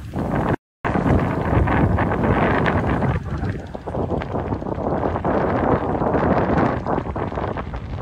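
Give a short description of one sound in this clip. Wind blows outdoors.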